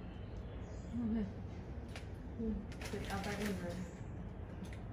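A parrot makes soft chattering sounds.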